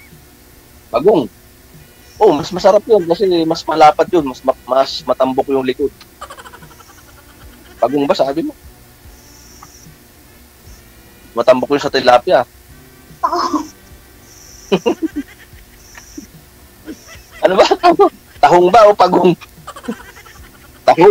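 A middle-aged man talks over an online call.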